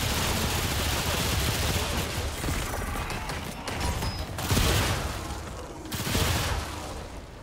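Pistol shots ring out with loud bangs.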